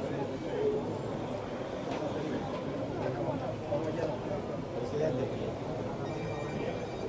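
Several men talk over one another close by, outdoors.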